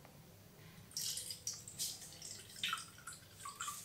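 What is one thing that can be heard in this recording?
Water pours into a glass mug and splashes.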